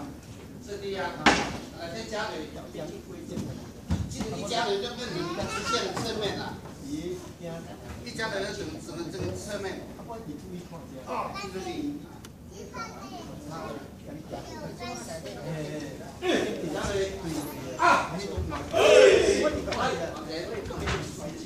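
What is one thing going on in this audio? Children and adults talk in a large echoing hall.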